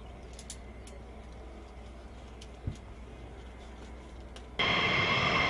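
A strap buckle clicks and rattles.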